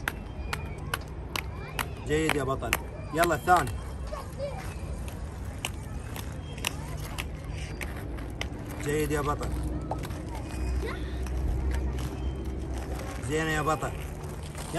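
Inline skate wheels roll and rumble on asphalt.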